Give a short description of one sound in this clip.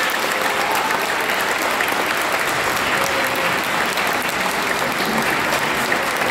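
A brass band plays in a large echoing hall.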